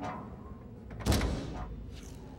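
A heavy metal door slams shut with a loud clank.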